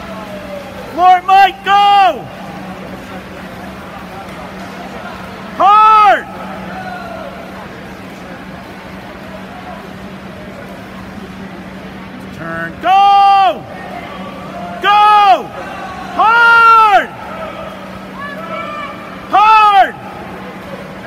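A spectator shouts encouragement close by in a large echoing hall.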